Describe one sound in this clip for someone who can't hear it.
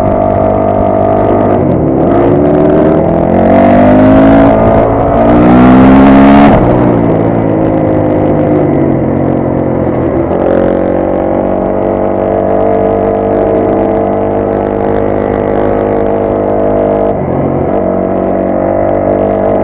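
A motorcycle engine drones close by, revving up and down as gears shift.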